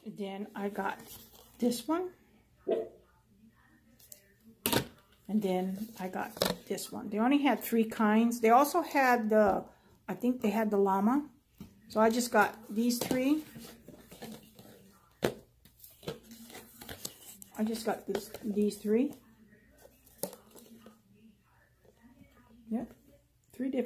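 Cardboard packages rustle and tap in a woman's hands.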